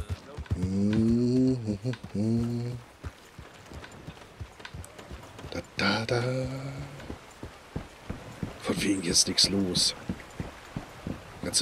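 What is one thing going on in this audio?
A horse's hooves clop steadily on dirt and wooden planks.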